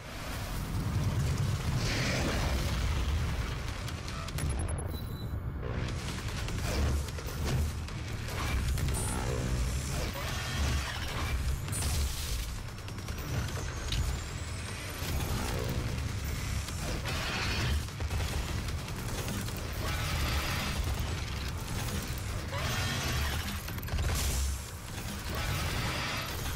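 A monster roars and growls.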